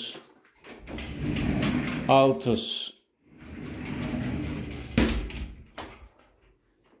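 A glass shower door slides along its track with a rumbling scrape.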